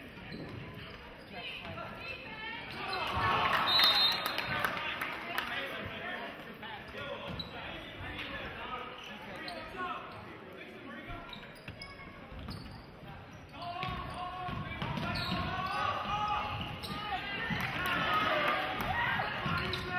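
A basketball bounces on the hardwood floor.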